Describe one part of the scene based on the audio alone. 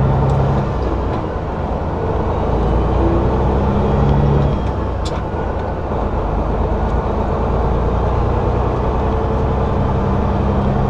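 Wind rushes loudly past a vehicle.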